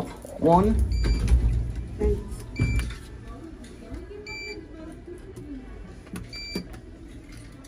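Elevator buttons beep sharply each time one is pressed.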